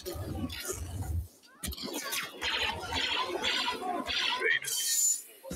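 Blaster fire crackles in rapid bursts.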